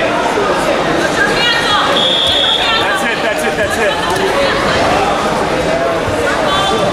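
A crowd of spectators shouts and calls out in a large echoing arena.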